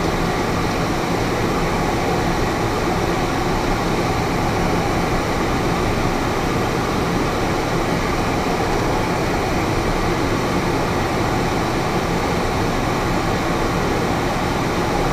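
A small plane's engine drones steadily from inside the cabin.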